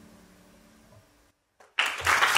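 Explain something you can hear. A guitar and a lute play softly, their last notes ringing out.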